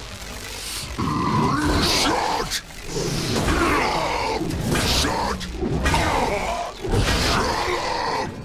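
Heavy blows crash loudly against metal.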